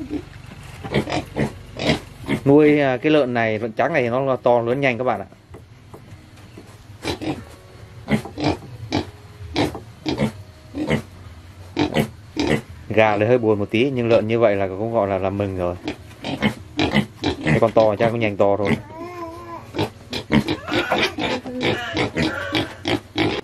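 Piglets grunt and snuffle close by.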